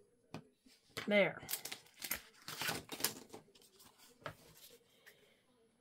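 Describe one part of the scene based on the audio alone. Paper crinkles as it is folded and creased.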